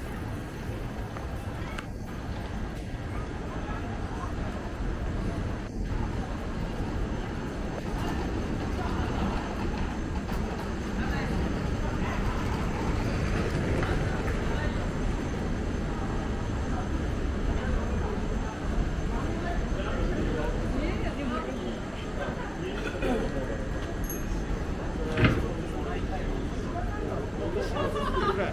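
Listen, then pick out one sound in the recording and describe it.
Footsteps of many people walk on pavement all around.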